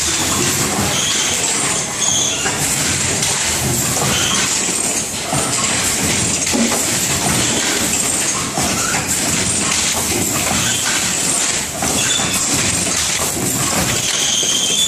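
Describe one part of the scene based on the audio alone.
Air hisses in short bursts from a machine.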